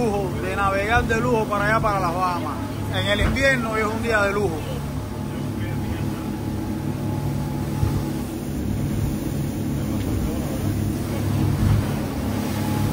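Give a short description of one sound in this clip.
A boat engine hums steadily.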